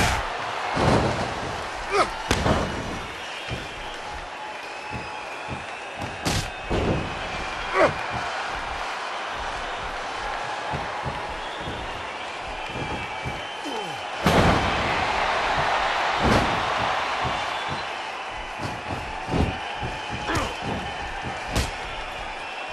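Heavy thuds of bodies slamming onto a padded floor ring out now and then.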